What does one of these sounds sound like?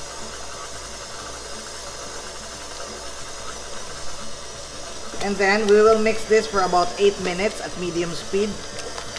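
A stand mixer whirs steadily.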